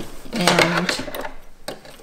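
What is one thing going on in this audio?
Scissors snip through thread.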